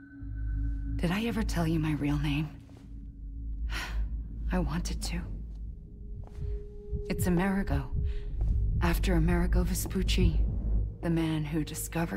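A young woman speaks calmly and quietly, close by.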